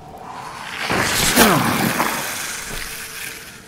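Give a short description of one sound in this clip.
A creature lets out a loud, rising and falling shriek.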